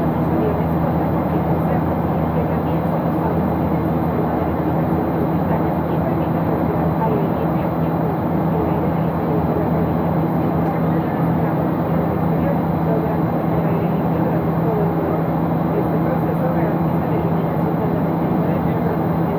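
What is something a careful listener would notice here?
An aircraft engine drones steadily with a constant roar of rushing air.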